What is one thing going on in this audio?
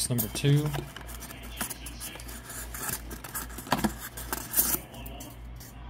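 Cardboard packaging rustles and crinkles as hands handle it.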